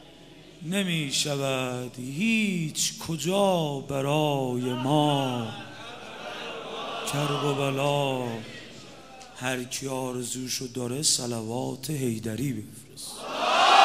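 A man chants in a rising and falling voice through a microphone.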